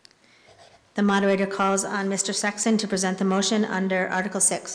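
A woman reads aloud calmly through a microphone in a large echoing hall.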